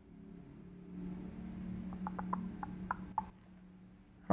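Computer keys click softly.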